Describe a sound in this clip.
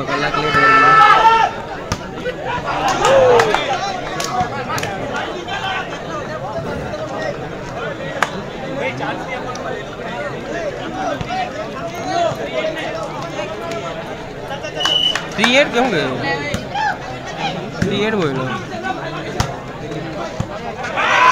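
A large crowd outdoors chatters, cheers and shouts throughout.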